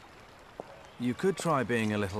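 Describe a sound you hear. A man replies.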